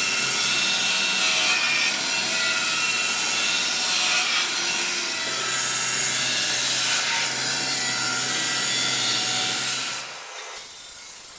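An abrasive cutting wheel grinds loudly through steel with a harsh screech.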